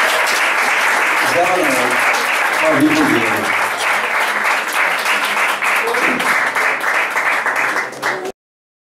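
A keyboard plays live music.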